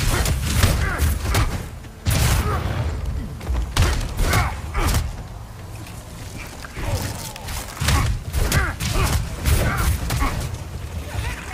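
Heavy blows and thuds land during a scuffle.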